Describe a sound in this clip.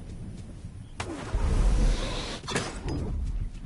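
A short whoosh rushes past.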